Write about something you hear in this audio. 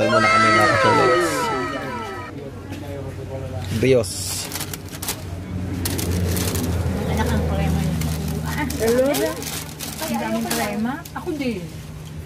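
Voices of people chatter nearby.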